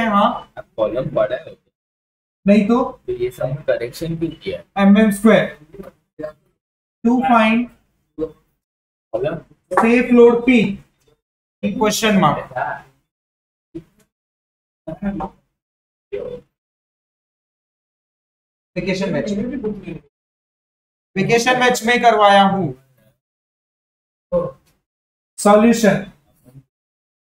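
A man speaks in short bursts close to a microphone, explaining calmly.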